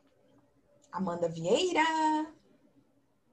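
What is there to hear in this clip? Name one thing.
A young girl speaks briefly over an online call.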